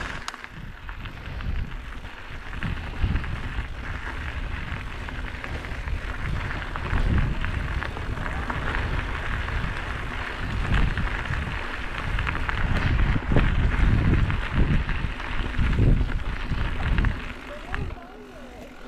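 A bicycle rattles as it bumps along the trail.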